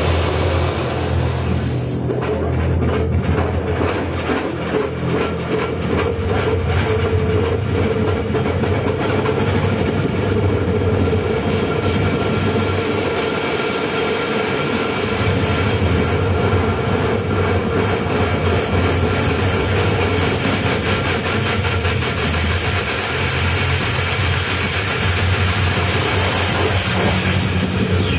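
Dense electronic music drones and hums loudly.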